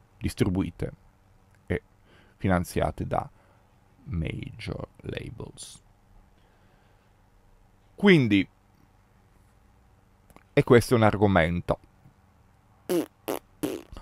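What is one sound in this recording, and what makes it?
A man speaks expressively into a close microphone, with pauses.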